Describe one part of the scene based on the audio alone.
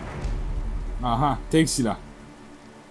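A young man speaks briefly into a microphone with animation.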